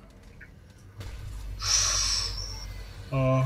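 A deep magical whoosh surges and hums, then fades.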